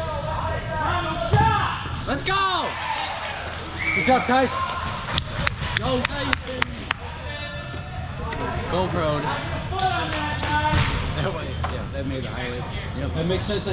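Players call out to each other across a large echoing indoor hall.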